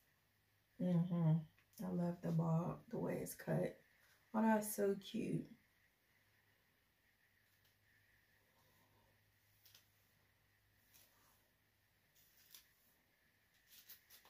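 A comb brushes softly through hair.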